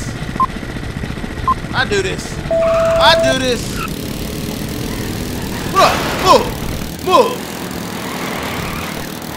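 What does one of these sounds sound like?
Small kart engines buzz and whine steadily.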